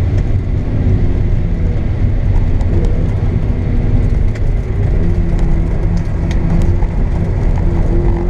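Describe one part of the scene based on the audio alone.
A car engine roars loudly from inside the cabin as the car speeds along.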